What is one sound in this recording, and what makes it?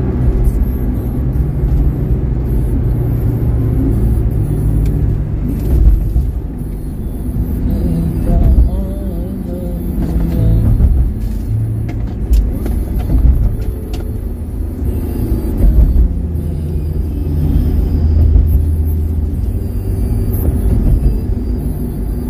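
Raindrops tap on a car window.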